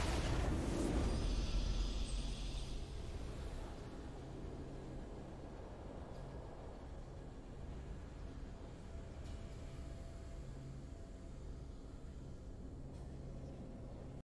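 A triumphant game fanfare swells and fades.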